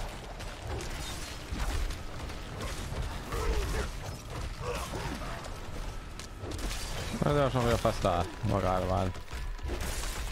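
Magic blasts and weapon hits crash and burst in a fight.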